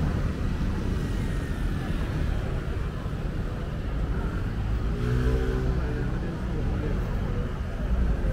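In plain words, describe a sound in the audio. City traffic rumbles steadily along a busy street.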